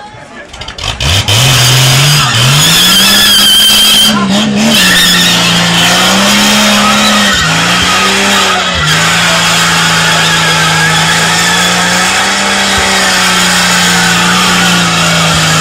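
A truck engine revs loudly and roars steadily nearby.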